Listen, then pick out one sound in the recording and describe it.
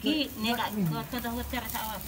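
Metal tongs clink against a grill.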